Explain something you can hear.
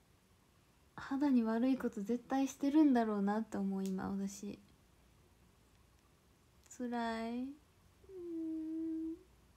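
A young woman speaks softly and with animation close to a microphone.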